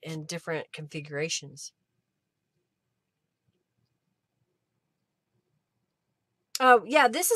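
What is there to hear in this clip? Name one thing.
A middle-aged woman talks calmly into a close microphone.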